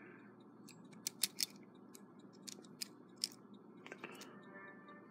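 Small metal parts click and tick as a clock movement is handled.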